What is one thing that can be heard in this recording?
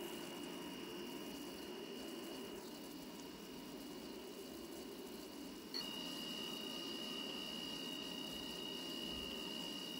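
An electric motor whines with a steady high tone.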